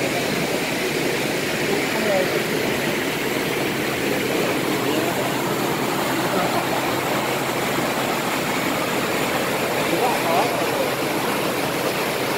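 Water gushes and churns loudly through lock gates.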